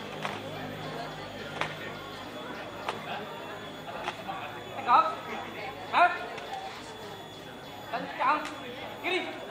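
A group of young people stamp their boots in unison outdoors.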